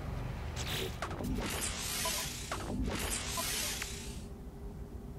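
Menu swooshes and soft interface clicks sound.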